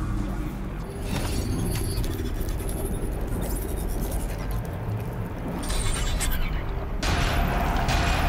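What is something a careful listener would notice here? A machine hums and crackles with electric energy.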